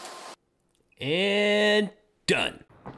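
A man cheers loudly and happily.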